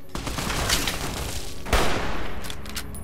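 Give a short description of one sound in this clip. An explosion booms with a loud blast.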